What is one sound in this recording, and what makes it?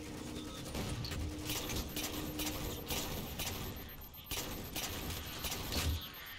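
Gunfire pops and crackles.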